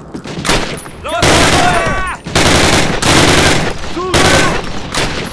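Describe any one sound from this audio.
A submachine gun fires rapid bursts up close.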